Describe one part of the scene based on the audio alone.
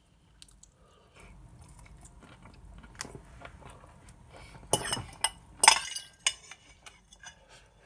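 A young man chews and slurps food noisily.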